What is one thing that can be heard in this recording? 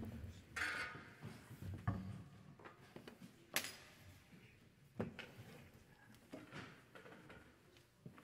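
A cello is knocked and shuffled into place.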